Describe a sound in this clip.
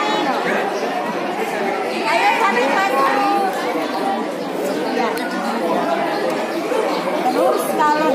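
A crowd of children and young people chatter nearby.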